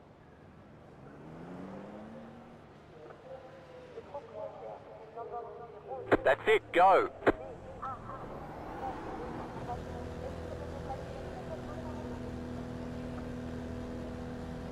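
A race car engine revs and drones as the car speeds along a track.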